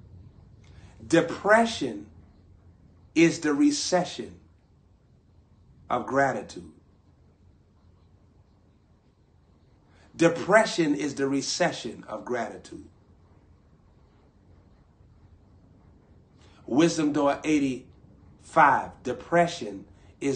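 A young man speaks calmly into a nearby microphone, in short bursts with pauses.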